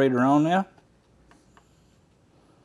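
A small plastic button clicks.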